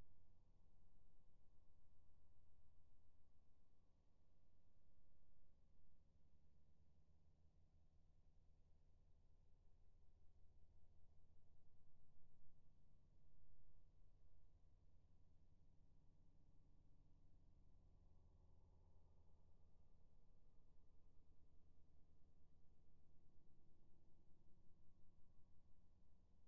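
An electric heating element hums low and steadily.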